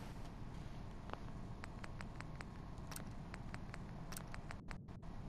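Menu selections click softly, one after another.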